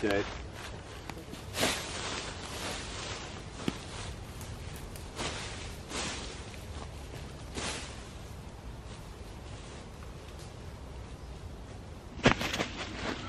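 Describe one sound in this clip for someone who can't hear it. A tarp flaps and rustles in the wind.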